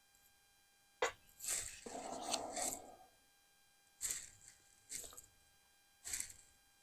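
A knife scrapes and spreads butter on bread.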